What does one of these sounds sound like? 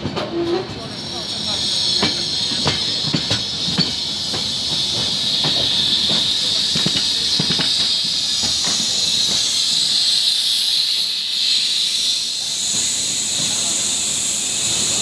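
Wind rushes loudly past the open train door.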